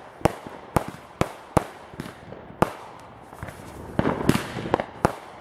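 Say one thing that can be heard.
Fireworks crackle and fizz in the sky.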